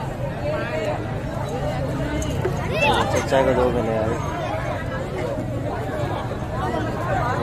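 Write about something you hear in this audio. Men in a crowd talk loudly over one another close by.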